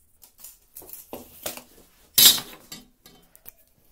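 A metal square knocks onto a wooden board.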